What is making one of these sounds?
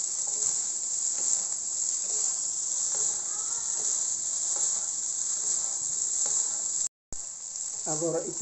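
Fried rice sizzles in a wok.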